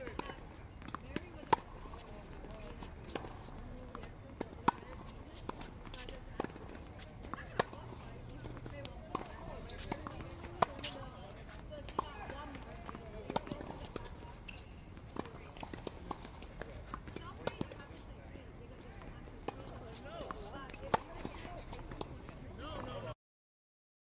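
Tennis balls bounce on a hard court.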